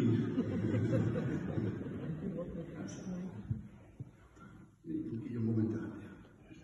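A man speaks calmly at a distance in an echoing hall.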